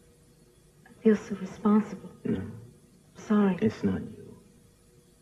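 A woman speaks in a distressed, pleading voice close by.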